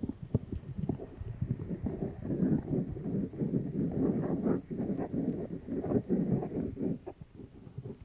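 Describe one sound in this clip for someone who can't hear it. A young woman whispers softly into a microphone, very close.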